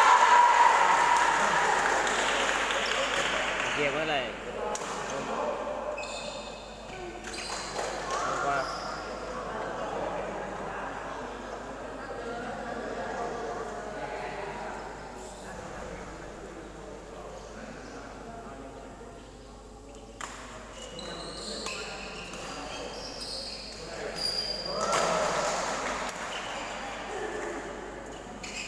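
Shuttlecocks are struck with a sharp pop in a large echoing hall.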